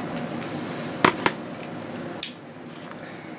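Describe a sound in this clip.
A plastic disc case clicks as it is handled.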